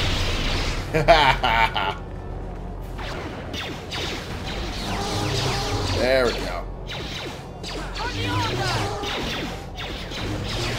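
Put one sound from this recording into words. Lightsabers clash with sharp crackles.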